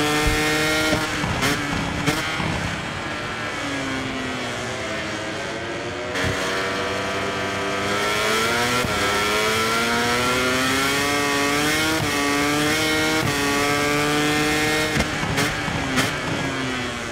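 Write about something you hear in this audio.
A motorcycle engine pops and crackles as the rider slows for corners.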